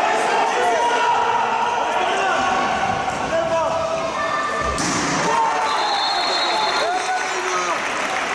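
Sneakers squeak on a sports hall floor as players run.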